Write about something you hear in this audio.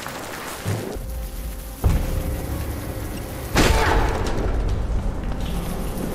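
Footsteps run quickly across hard ground and up metal stairs.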